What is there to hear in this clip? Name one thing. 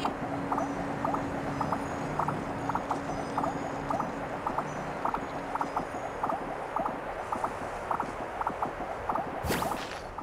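Hands and feet scrape on rock in a steady climbing rhythm.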